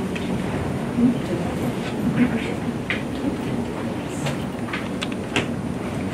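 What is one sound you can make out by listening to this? A woman speaks softly into a microphone.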